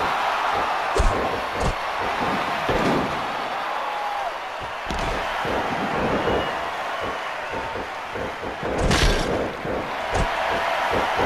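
Heavy thuds of bodies hitting a mat sound now and then.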